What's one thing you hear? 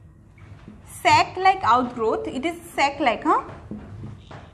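A young woman speaks clearly nearby.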